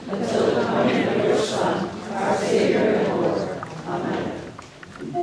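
A small group of singers sings an anthem in a large echoing hall.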